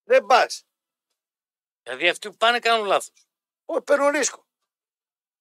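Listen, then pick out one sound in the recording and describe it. A man speaks with animation into a microphone in short bursts.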